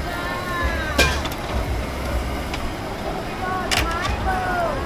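Metal tongs clack against a grill.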